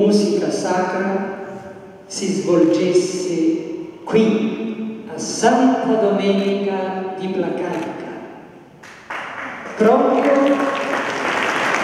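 An older man speaks calmly into a microphone, heard through loudspeakers.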